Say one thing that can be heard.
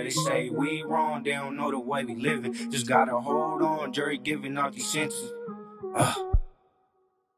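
A young man raps rhythmically and close into a microphone.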